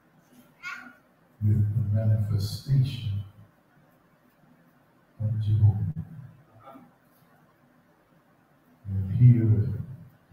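A man preaches slowly and deliberately into a microphone, with long pauses, in a reverberant hall.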